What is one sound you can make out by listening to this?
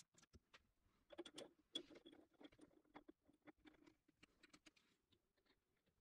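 A chuck key ratchets and clicks as it tightens a lathe chuck.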